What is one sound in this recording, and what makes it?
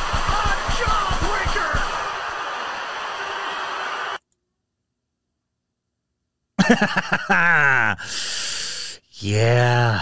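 A man laughs close to a microphone.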